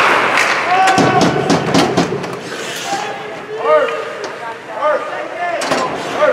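Spectators shout and cheer nearby.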